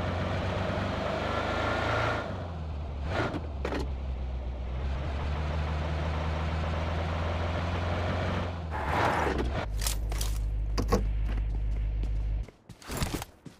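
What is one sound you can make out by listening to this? A car engine hums steadily, then cuts off.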